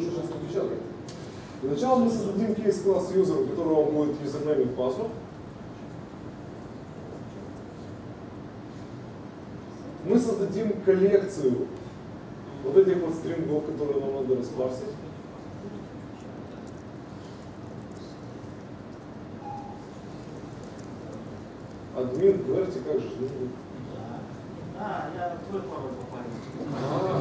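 A man speaks calmly to an audience in a room, heard from a distance with some echo, pausing between phrases.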